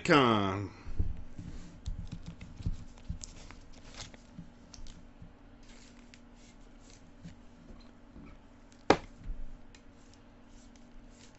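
Gloved hands handle a card, with soft rustling and light knocks.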